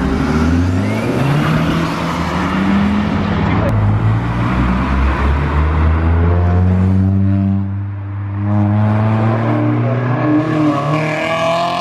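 Tyres hiss on a wet road as cars pass.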